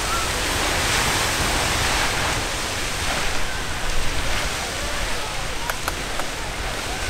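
A geyser hisses and roars steadily as water and steam shoot upward.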